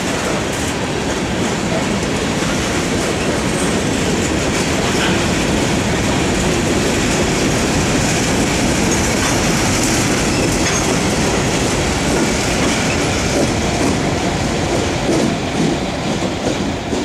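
A freight train rumbles past close by, wheels clattering on the rails.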